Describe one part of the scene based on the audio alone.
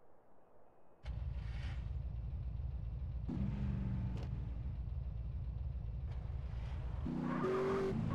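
A car engine starts and idles with a low rumble.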